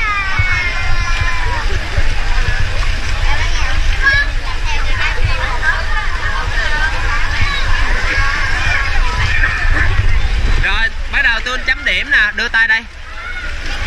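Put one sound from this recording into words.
Children shout and chatter excitedly around a pool.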